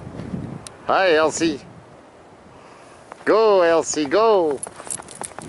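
A small dog barks.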